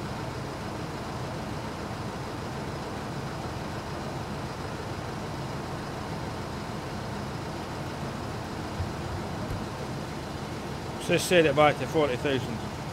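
An engine idles steadily nearby with a low hum.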